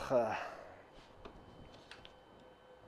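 Metal tools click and tap against a motorcycle engine.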